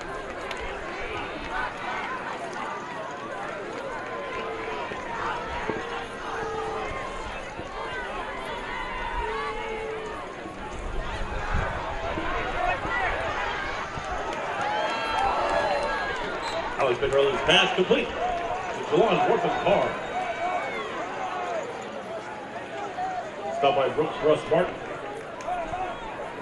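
A stadium crowd murmurs and cheers outdoors.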